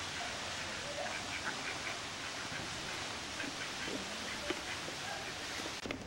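Ducks quack softly.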